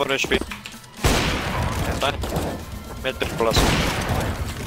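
A sniper rifle fires with a loud, booming crack.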